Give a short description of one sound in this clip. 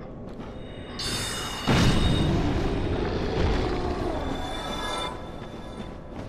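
A spell bursts with a loud whooshing blast.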